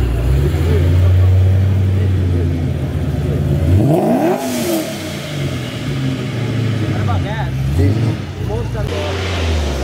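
A car engine rumbles deeply as the car pulls away.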